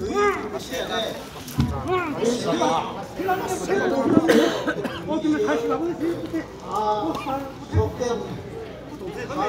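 A group of men chant and call out loudly outdoors.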